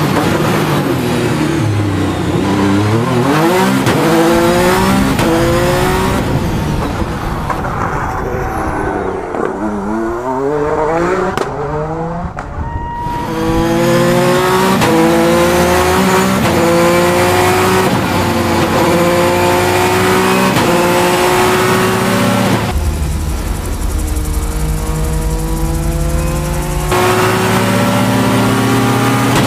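A racing car engine revs hard, its pitch climbing with each gear and dropping at each shift.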